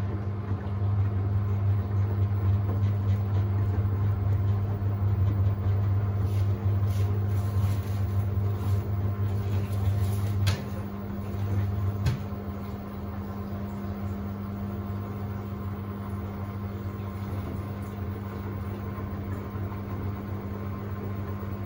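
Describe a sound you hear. Water and suds slosh inside a washing machine drum.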